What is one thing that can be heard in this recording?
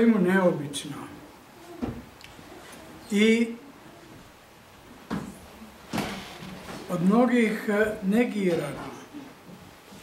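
An elderly man speaks slowly and solemnly in a room with some echo.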